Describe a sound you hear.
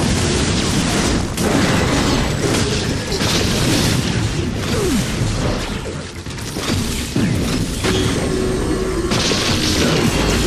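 Laser beams zap and buzz in a video game.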